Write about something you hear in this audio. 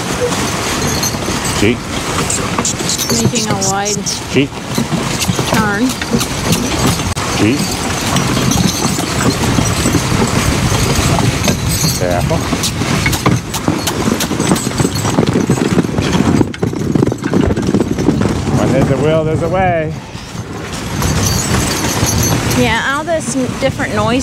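Horse hooves crunch steadily through snow.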